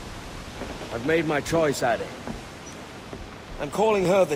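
A man speaks calmly and firmly, close by.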